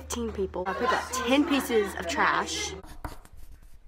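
A young woman talks close by, with animation.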